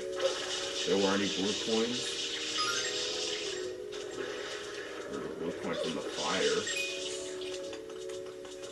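Upbeat video game music plays steadily.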